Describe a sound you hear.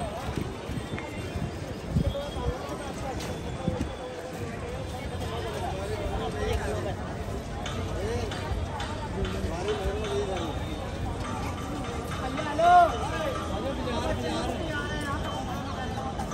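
A crowd of people chatters outdoors in the open.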